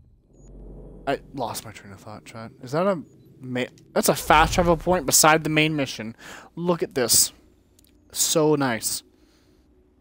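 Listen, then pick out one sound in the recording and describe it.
A young man talks with animation through a headset microphone.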